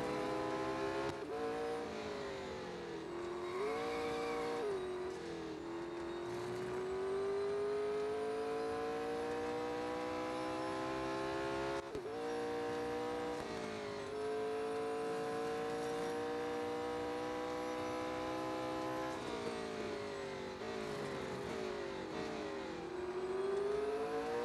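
A racing car engine roars loudly, rising in pitch as it speeds up and dropping sharply at each gear change.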